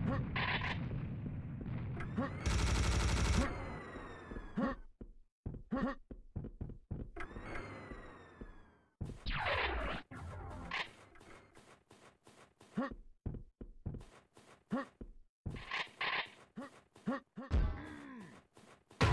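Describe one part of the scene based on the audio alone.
Quick footsteps thud on snowy ground.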